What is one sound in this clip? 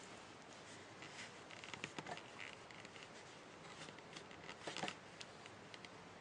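A cotton glove rustles softly against a wrist.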